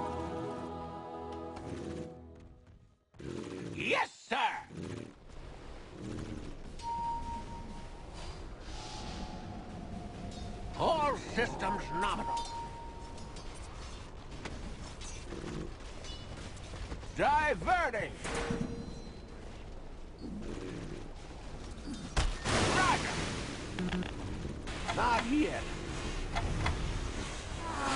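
Game fight effects clash and zap.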